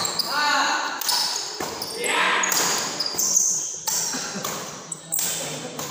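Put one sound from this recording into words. Rackets smack a shuttlecock back and forth.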